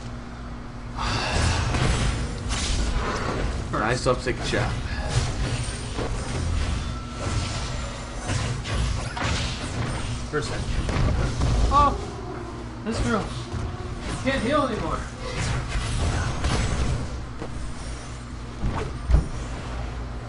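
Spell and combat effects crackle and burst in quick succession.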